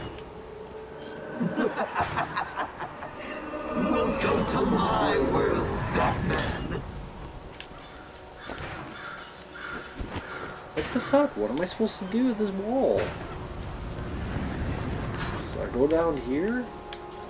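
A man talks casually and close by into a microphone.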